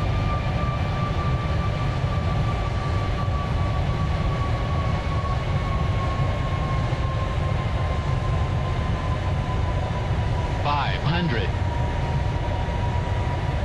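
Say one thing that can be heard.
A jet engine roars steadily with a high whine.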